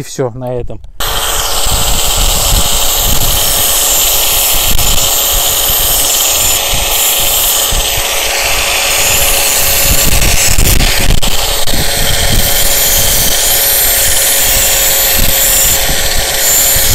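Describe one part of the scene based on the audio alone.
A knife blade scrapes and hisses against a spinning grinding disc.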